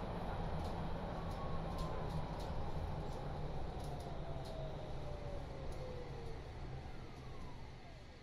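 Train brakes squeal with a falling whine as the train comes to a stop.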